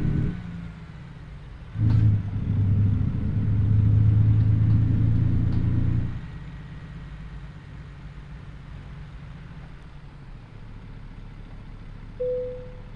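A truck engine rumbles low, revs up loudly, then settles back to a quiet idle.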